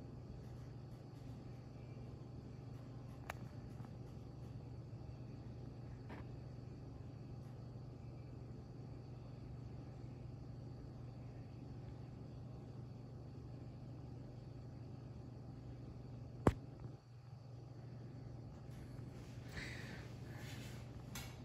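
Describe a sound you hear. A ceiling fan whirs and hums steadily.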